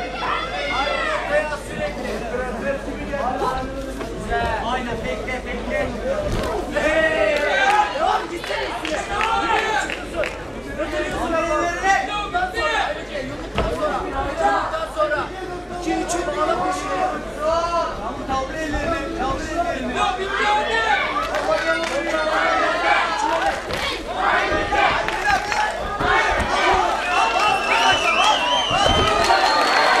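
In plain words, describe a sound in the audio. A crowd of spectators shouts and cheers in a large hall.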